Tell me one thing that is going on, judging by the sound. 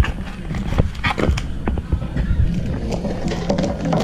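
A cardboard box knocks down onto a glass counter.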